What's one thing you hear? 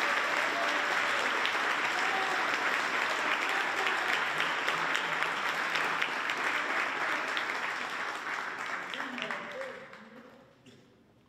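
A crowd of young people chatters loudly in a large echoing hall, then falls quiet.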